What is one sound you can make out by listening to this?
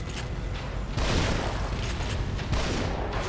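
A shotgun fires with a loud boom.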